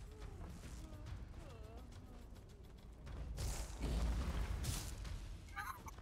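Spells and blows clash in a game fight.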